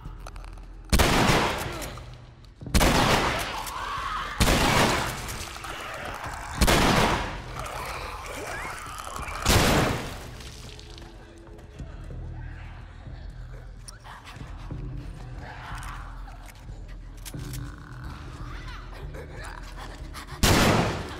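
Loud gunshots fire several times and echo.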